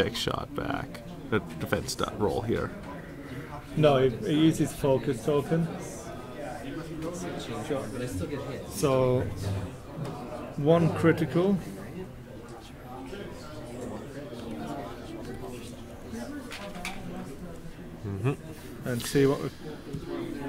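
Two men talk casually nearby.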